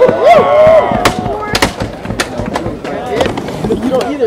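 A skateboard clacks sharply against the ground.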